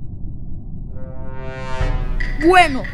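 A short electronic sting sounds as a round begins.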